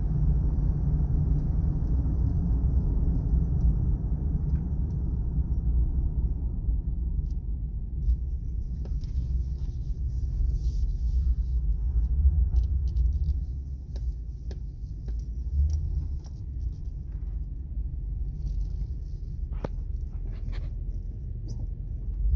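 A V8 sedan engine hums from inside the car while driving.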